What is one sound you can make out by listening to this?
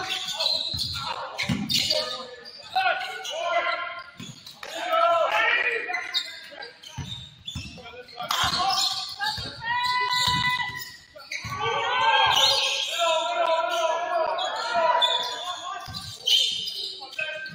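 A basketball bounces on a hard floor in an echoing gym.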